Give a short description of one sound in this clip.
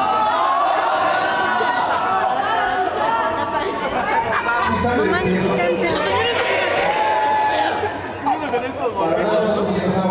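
A man sings into a microphone over the band.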